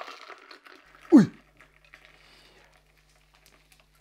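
A drink is poured from a shaker into a glass.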